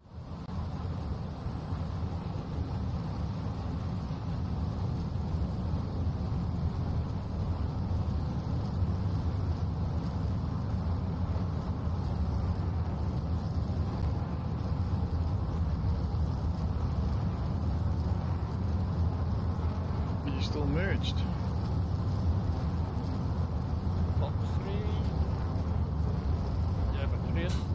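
A jet engine roars steadily with a deep rumble.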